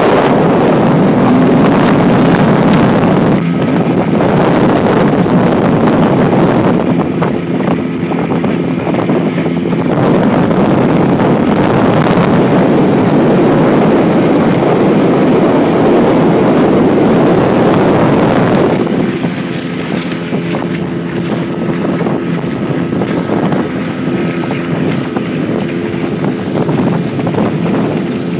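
An outboard motor drones steadily close by.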